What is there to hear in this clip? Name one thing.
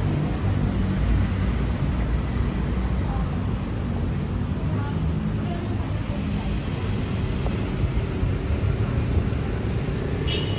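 City traffic rumbles steadily nearby, outdoors.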